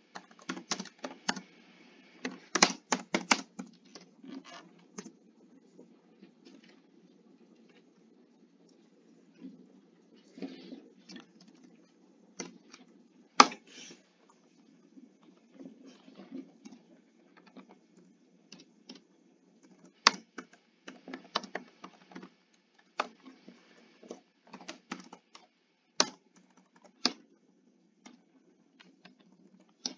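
Short game sounds of blocks being placed and of hits click and thump again and again.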